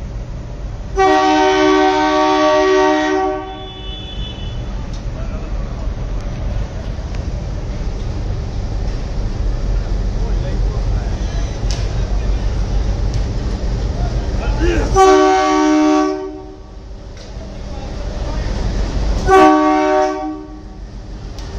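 A locomotive horn blares loudly in long blasts.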